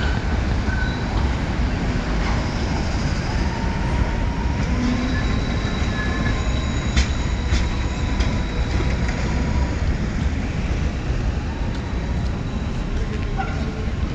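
Traffic rumbles along a busy street.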